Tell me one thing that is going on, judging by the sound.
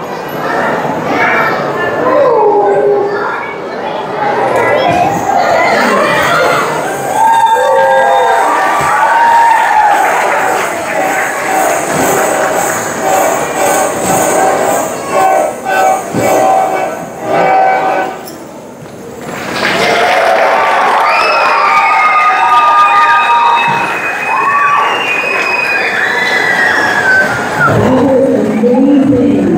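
Children and adults in an audience chatter in a large echoing hall.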